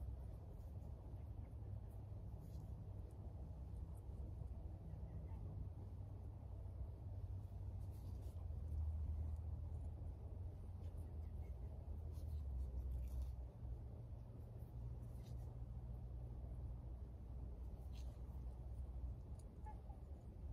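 Seeds patter softly onto loose soil.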